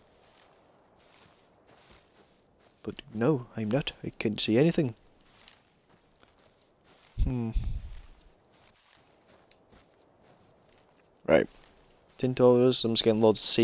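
Leafy plants rustle as they are picked by hand.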